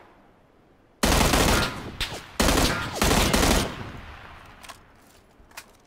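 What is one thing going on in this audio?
Loud rifle shots burst out in quick bursts and echo away.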